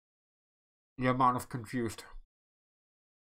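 A man speaks briefly close to a microphone.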